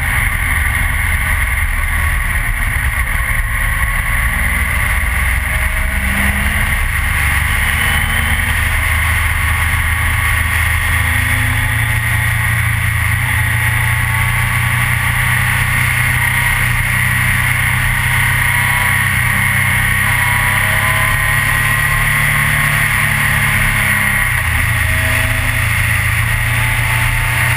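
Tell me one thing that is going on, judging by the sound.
A motorcycle engine drones steadily up close, rising and falling in pitch.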